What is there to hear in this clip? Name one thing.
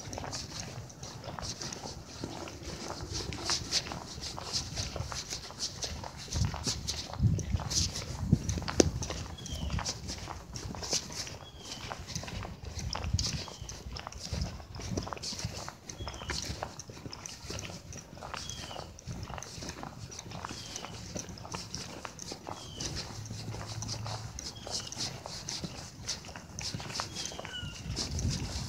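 Shoes scuff and tap on pavement with each step.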